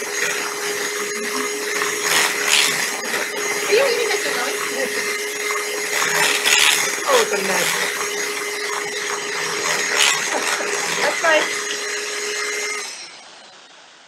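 A hand mixer whirs loudly.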